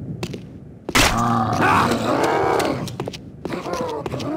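A zombie growls and snarls up close.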